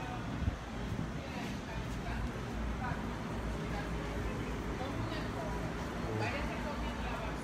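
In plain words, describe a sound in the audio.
A woman talks quietly in the distance.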